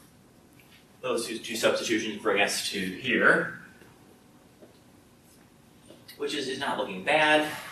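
A man speaks calmly, close by in a slightly echoing room.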